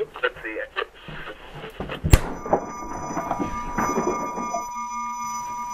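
Rustling and knocking sounds come from close handling of a device.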